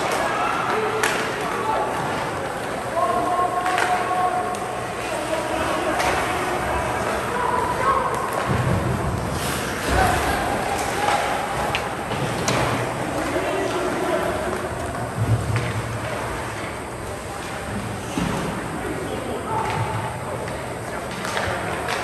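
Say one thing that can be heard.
Hockey sticks clack sharply against a puck, echoing in a large rink.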